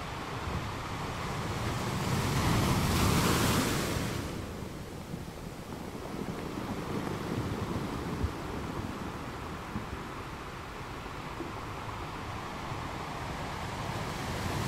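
Surf rushes and hisses steadily over the rocks.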